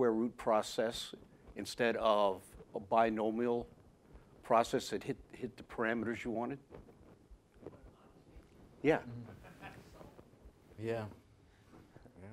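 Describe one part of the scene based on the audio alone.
A man speaks steadily through a microphone in a large room.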